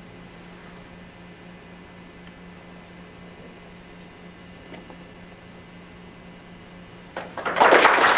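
A guitar plays softly, a few last notes ringing out.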